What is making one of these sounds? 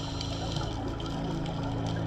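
A diver's breathing bubbles gurgle and rumble underwater.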